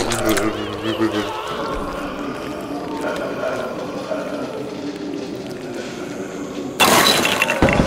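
A bowling ball rolls down a lane with a low rumble.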